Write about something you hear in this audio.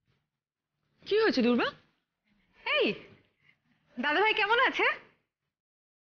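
A woman speaks tensely and exclaims sharply.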